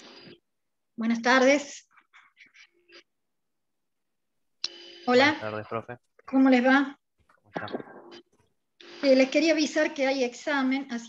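A middle-aged woman speaks with emotion over an online call.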